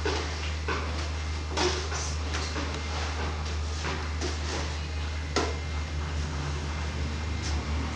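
A young girl talks and babbles close by.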